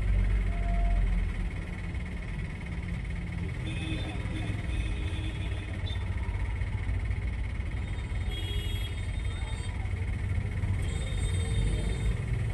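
A car engine idles amid busy street traffic.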